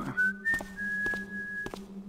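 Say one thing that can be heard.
Footsteps fall on a stone floor.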